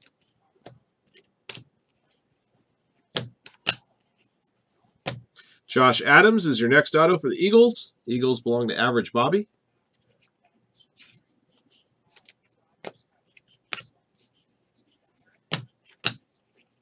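Trading cards flick and slide against each other as a hand leafs through a stack.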